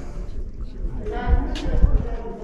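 A woman talks faintly at a distance.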